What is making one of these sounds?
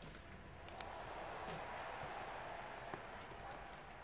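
Plastic rustles as a bag is opened.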